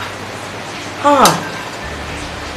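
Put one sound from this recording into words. A woman exclaims loudly close by.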